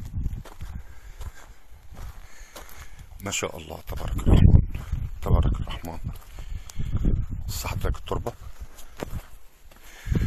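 A swarm of locusts rustles and whirs over the sand.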